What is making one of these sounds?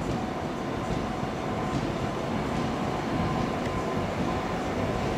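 A train rolls slowly along the track with a low rumble.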